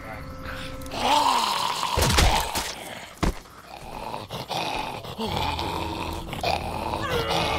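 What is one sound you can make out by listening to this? A young man shouts with excitement close to a microphone.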